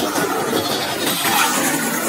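Flames roar in a burst of fire.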